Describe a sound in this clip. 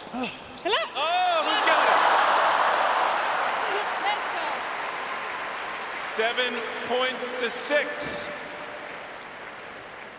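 A large crowd cheers and applauds in a big open arena.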